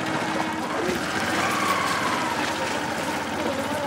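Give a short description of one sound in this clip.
A small motor vehicle's engine rattles past close by.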